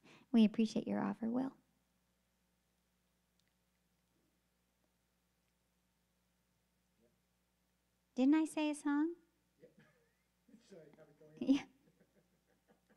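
A woman speaks into a microphone close by, in short bursts with pauses.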